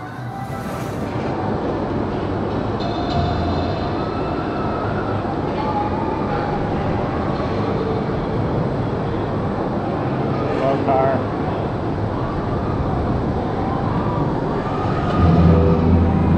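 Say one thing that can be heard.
A ride car rumbles slowly along its track, heard from on board.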